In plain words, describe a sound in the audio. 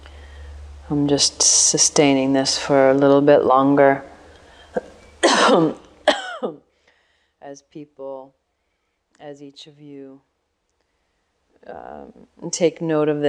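A woman speaks calmly and closely into a microphone.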